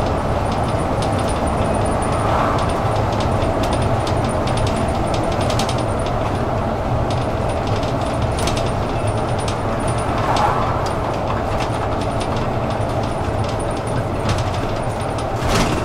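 Bus fittings rattle and click over the road.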